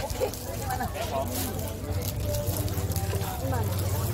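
A busy crowd murmurs in the background.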